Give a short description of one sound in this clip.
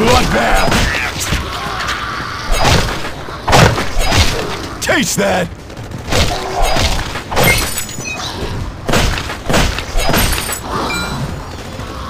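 A pickaxe thuds into zombies with heavy blows.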